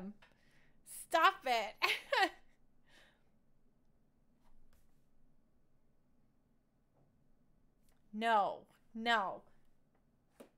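A young woman speaks playfully and close into a microphone, her voice rising and falling in sing-song bursts.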